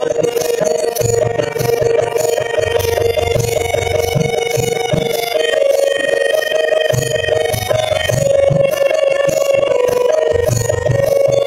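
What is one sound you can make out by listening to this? Small hand cymbals clash in a regular beat.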